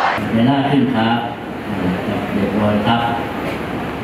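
Several men chant together in unison.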